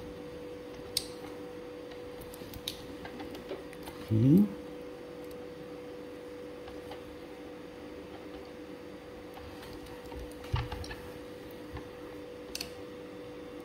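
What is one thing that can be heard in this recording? A small metal tool clicks against a coffee grinder.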